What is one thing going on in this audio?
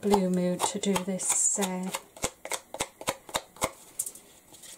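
A sponge dabs and taps lightly on paper.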